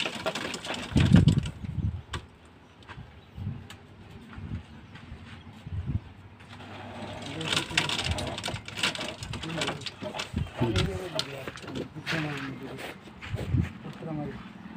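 A trowel taps and scrapes on bricks and mortar.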